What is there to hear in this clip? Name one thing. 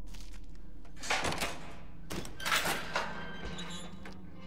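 A heavy metal cage door rattles and clanks open.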